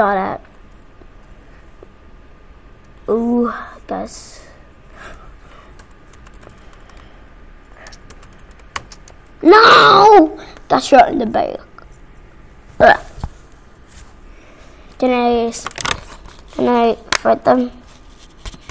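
A young boy talks excitedly and shouts into a close microphone, in short bursts.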